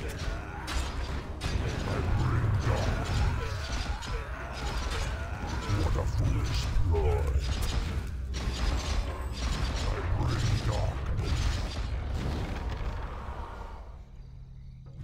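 Weapons clash and magic blasts crackle in a fierce battle.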